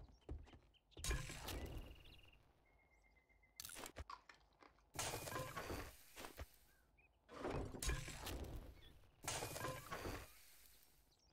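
Game menus open and close with short whooshing clicks.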